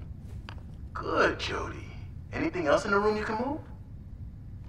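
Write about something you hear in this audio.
A middle-aged woman speaks with animation, close by.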